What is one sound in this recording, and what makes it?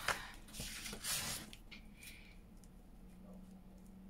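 A metal ruler taps down onto paper.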